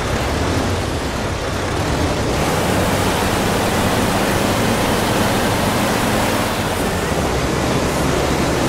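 A bus engine hums steadily while the bus drives along a road.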